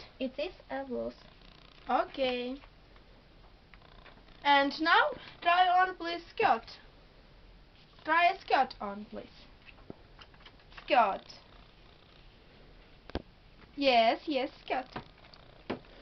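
A young girl talks nearby in short, lively bursts.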